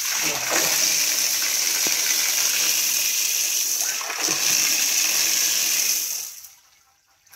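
Water pours and splashes loudly into a shallow tank.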